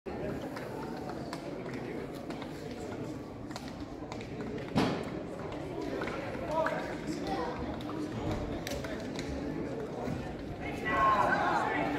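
Players' voices chatter and call out at a distance.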